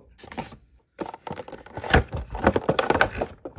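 Stiff plastic packaging crinkles and crackles as a hand handles it.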